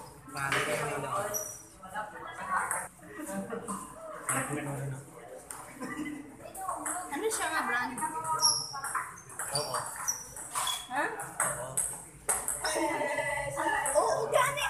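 Young people chatter and call out nearby in an echoing room.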